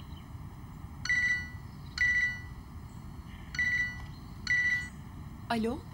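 A mobile phone rings with a repeating electronic tone.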